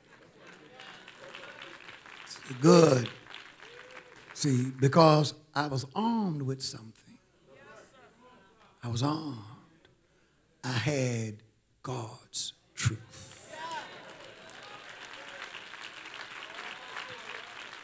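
A congregation claps along.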